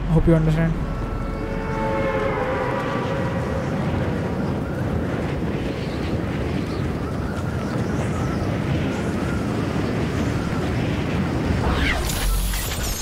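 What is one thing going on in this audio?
Wind rushes loudly during a fast freefall.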